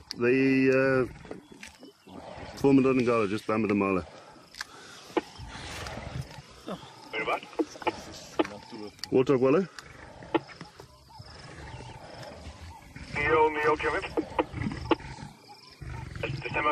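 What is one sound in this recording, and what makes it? Lions crunch and tear at flesh and bone.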